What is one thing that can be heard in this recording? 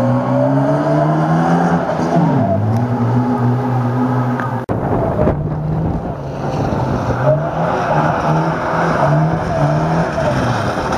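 A rally car engine roars loudly, revving up and down as the car races past.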